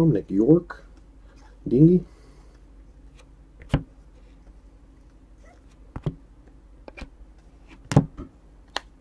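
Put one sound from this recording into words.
Cards softly click and tap as they are flipped through by hand.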